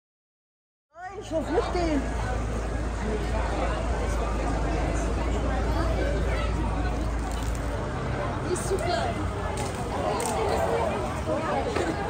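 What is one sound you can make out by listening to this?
A crowd chatters outdoors on a street.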